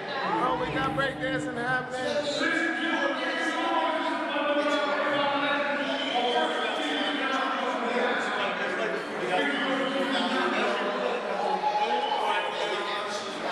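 A crowd of men and women talk over one another nearby, in a hallway that echoes.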